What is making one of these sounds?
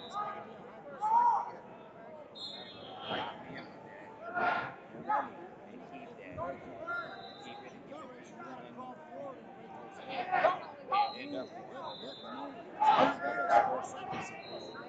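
Spectators shout and cheer loudly at moments.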